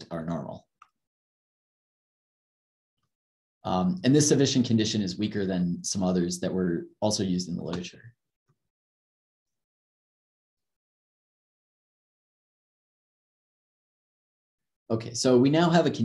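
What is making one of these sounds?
A young man speaks calmly through an online call microphone, with pauses.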